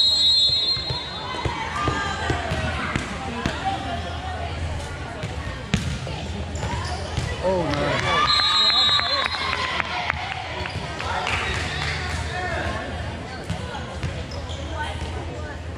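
A volleyball is struck with hard slaps.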